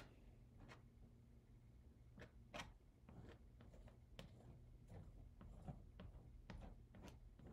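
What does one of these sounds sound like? A metal tool scrapes and taps against brittle glass pieces.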